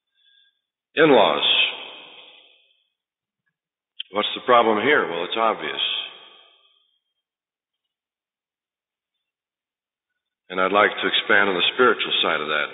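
A man speaks calmly, with pauses, through a microphone.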